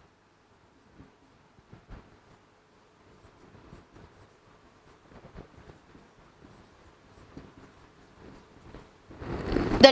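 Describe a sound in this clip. A pen taps and squeaks faintly on a board.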